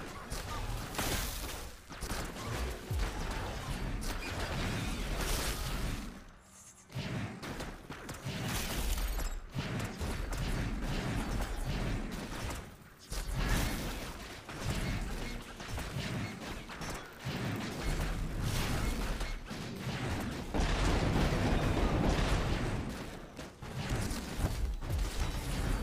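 Magic spells zap and crackle in a game.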